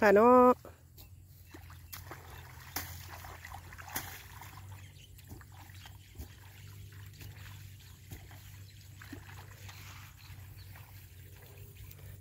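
Hands splash and scoop in shallow muddy water.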